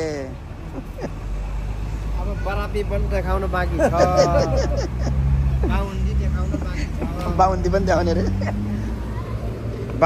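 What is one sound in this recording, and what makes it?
An elderly man talks and laughs close by.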